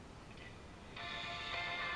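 A small transistor radio starts playing through its tinny loudspeaker.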